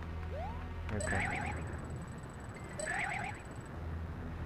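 A character spins with a quick whooshing jingle.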